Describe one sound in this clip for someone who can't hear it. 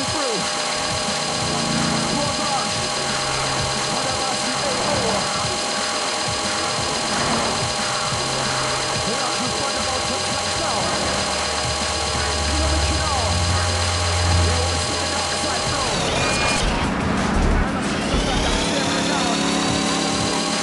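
A small motor whines steadily as a toy car races along.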